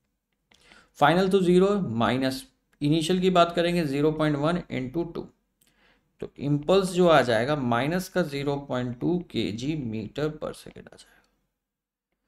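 A man explains calmly through a close microphone.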